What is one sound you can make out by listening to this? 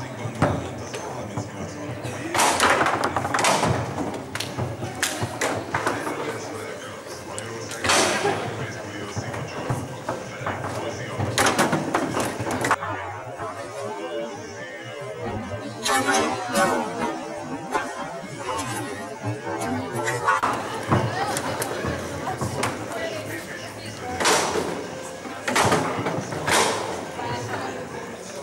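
A foosball clacks and bangs against the rods and walls of a table.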